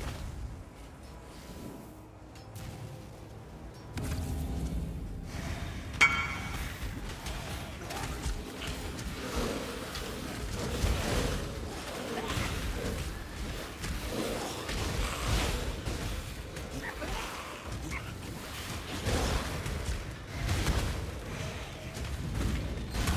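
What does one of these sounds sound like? Magic blasts crackle and boom rapidly in a game.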